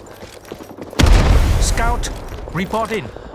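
A rifle fires a loud shot that booms and rumbles away.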